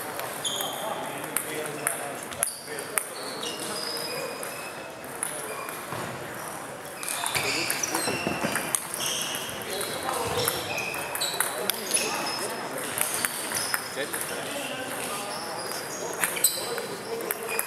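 A table tennis ball clicks back and forth across a table, echoing in a large hall.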